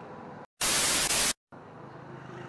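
A burst of loud static hisses.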